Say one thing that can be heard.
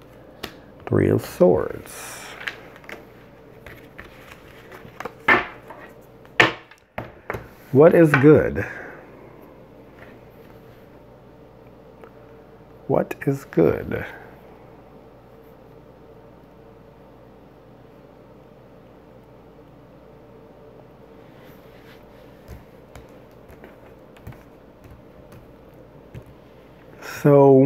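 Playing cards slap and slide on a table.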